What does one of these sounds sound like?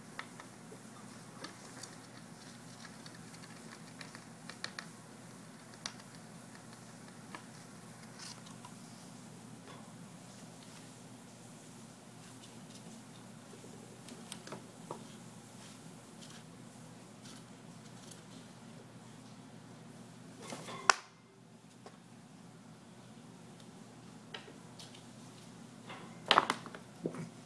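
A small animal gnaws and scratches at a wooden block with short clicks.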